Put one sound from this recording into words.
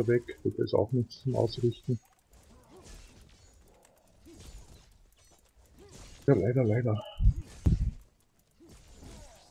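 Weapons clash and magic blasts burst in a fight.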